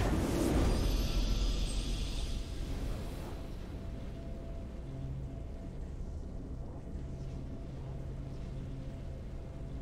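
A triumphant fanfare plays softly.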